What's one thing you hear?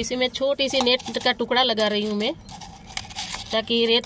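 A stick stirs and scrapes inside a plastic cup.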